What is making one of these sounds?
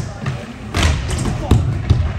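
A skateboard clatters and scrapes along a metal rail.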